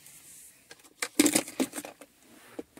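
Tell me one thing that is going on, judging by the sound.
A gear lever clicks as it is moved.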